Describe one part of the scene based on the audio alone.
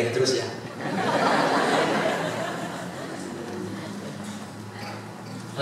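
A group of women laugh together in a large echoing hall.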